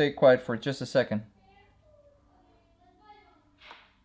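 A chess piece is set down on a wooden board with a soft knock.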